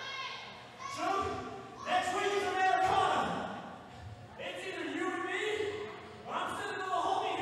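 A man shouts loudly into a microphone, heard over loudspeakers in an echoing hall.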